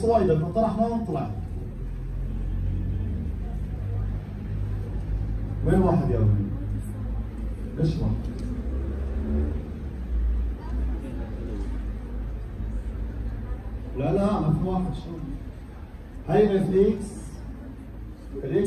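A man speaks through a microphone in short bursts, explaining calmly.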